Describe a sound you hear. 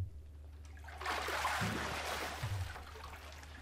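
Ice rattles and water sloshes as a hand pushes through a tub of ice.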